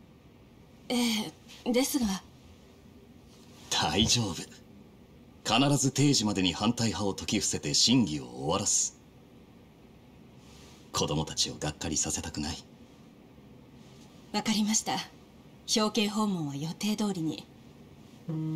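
A young woman speaks calmly and softly.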